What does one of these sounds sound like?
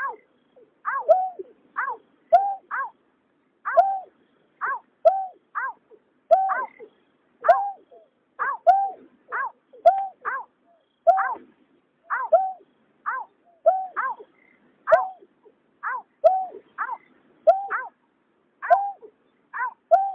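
Birds call with short, falling, hooting notes over and over, close by.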